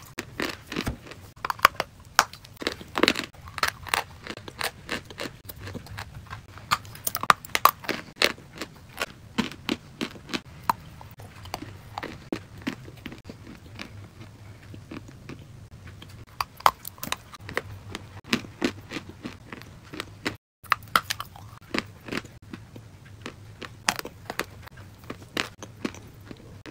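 A young woman chews and crunches food very close to a microphone.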